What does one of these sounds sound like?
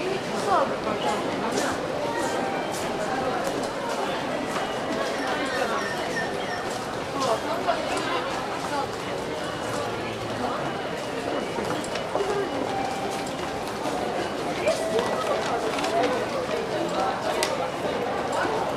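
Footsteps click and shuffle on a hard floor.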